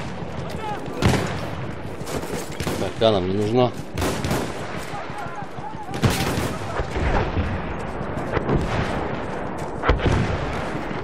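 Explosions boom nearby, several times.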